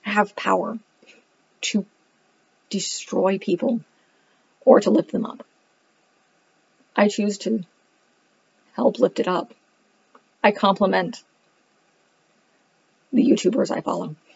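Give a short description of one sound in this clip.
A woman speaks calmly in short phrases, close to the microphone.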